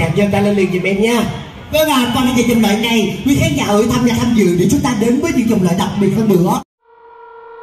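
A young woman sings loudly through a microphone.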